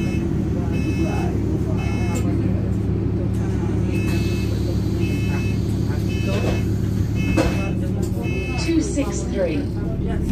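A bus engine drones steadily while the bus drives along.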